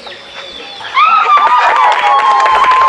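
A group of women clap their hands in rhythm.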